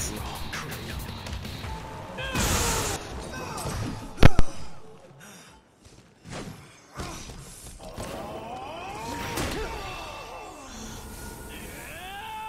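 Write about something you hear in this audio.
Magic crackles and booms with heavy impacts.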